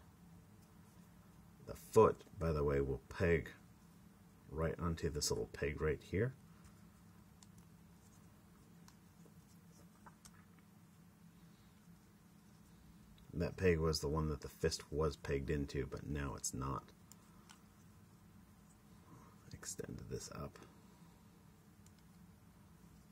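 Small plastic parts click and rattle as a toy figure is handled and folded.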